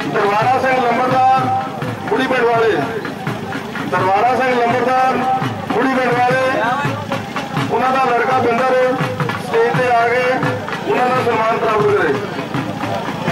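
A man speaks loudly with animation through a microphone and loudspeaker outdoors.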